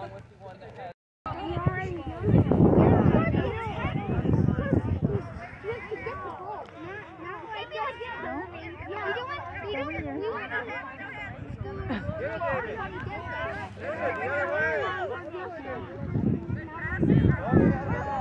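Young children shout and chatter excitedly nearby outdoors.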